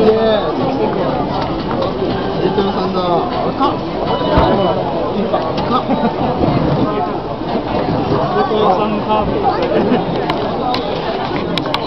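A crowd of people chatter loudly all around outdoors.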